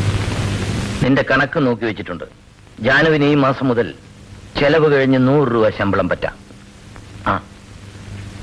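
A man speaks slowly and calmly nearby.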